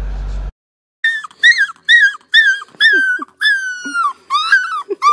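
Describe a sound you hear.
A puppy howls in high, wavering cries.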